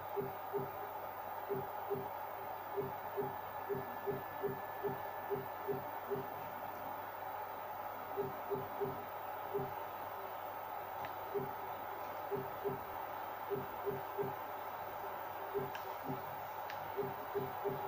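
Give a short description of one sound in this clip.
Short electronic blips tick from a television speaker.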